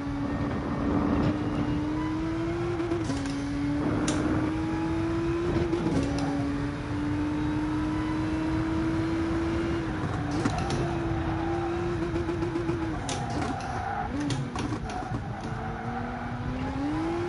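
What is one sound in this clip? A racing car engine drones and rises in pitch, dropping with each gear change.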